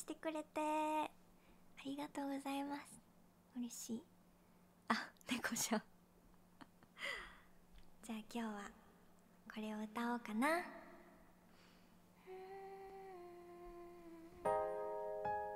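A young woman sings close to a microphone, in short phrases with held notes.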